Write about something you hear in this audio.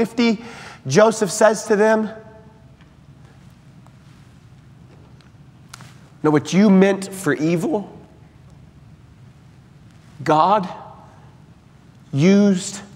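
A man preaches with animation through a microphone in a large echoing hall, pausing between phrases.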